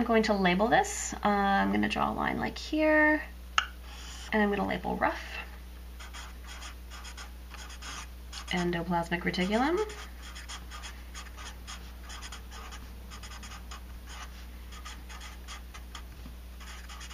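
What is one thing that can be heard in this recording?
A felt-tip marker scratches and squeaks across paper in short strokes.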